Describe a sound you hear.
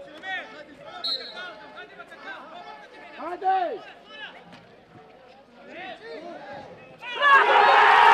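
Players shout and call to each other across an outdoor pitch.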